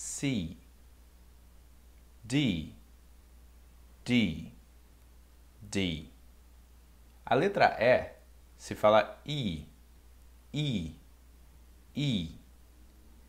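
A young man speaks calmly and clearly into a nearby microphone, saying short words with pauses between them.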